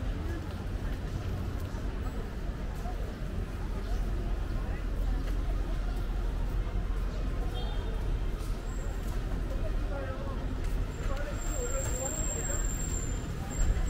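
Voices of passers-by murmur on a busy street outdoors.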